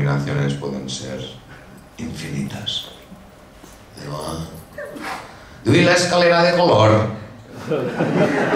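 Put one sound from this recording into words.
A man speaks with animation into a microphone, heard through a loudspeaker in a large room.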